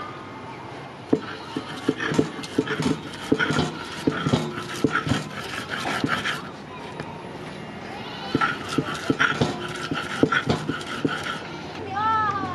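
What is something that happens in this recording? A grater scrapes rapidly with rough, rasping strokes.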